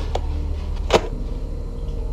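A fan hums steadily.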